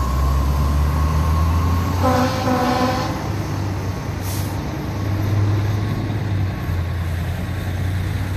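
A fire truck engine rumbles loudly as the truck drives past.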